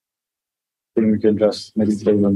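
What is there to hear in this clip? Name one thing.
A man speaks briefly, heard through an online call.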